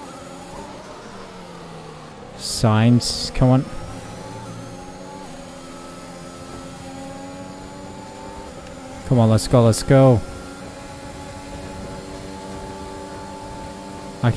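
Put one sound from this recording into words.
A racing car engine whines and climbs in pitch through the gears.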